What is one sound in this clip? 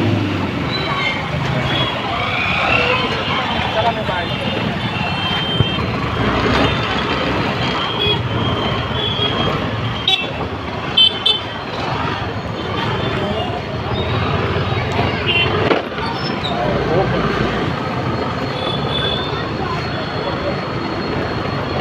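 A crowd chatters all around outdoors.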